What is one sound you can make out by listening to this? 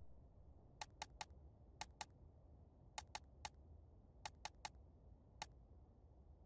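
Short electronic menu beeps click in quick groups.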